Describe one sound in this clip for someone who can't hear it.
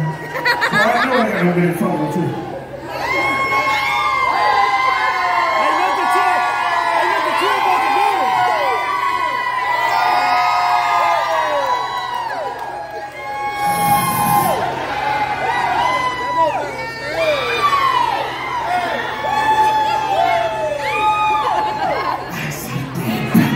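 A man raps loudly into a microphone over loudspeakers.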